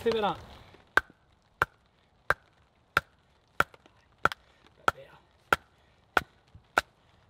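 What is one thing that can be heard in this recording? A wooden baton knocks sharply on a knife blade, again and again at a steady pace.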